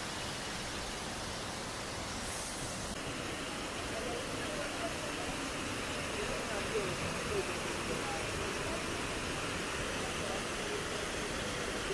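A waterfall roars and splashes steadily close by.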